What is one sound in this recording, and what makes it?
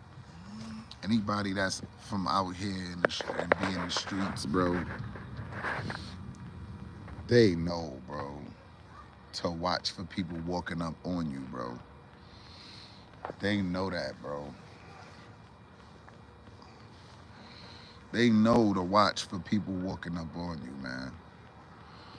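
A young man talks casually and close up, in bursts with pauses.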